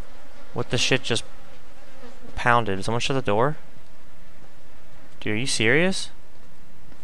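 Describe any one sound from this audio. A young man talks in short bursts into a close microphone.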